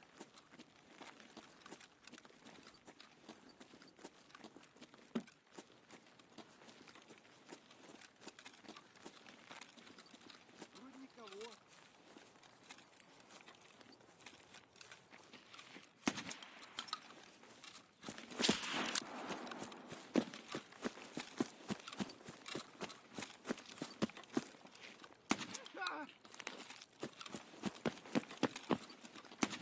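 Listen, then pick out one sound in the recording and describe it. Footsteps patter quickly on hard ground and grass.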